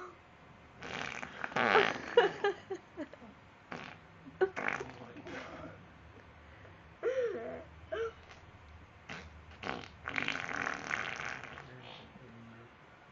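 A young man laughs in short bursts close by.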